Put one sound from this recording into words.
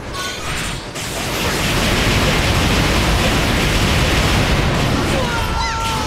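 Rapid gunfire and explosions roar loudly.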